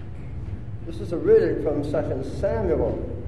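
An elderly man speaks calmly and clearly in a large echoing hall.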